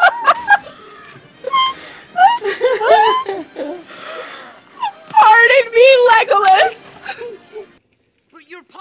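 A young woman laughs loudly over an online call.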